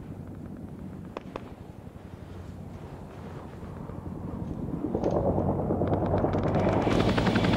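An aircraft engine drones steadily and grows louder.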